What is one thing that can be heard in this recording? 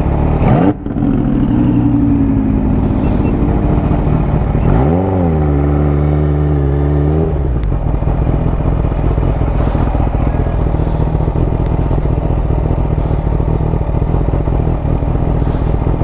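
A motorcycle engine hums and revs as the bike rides along.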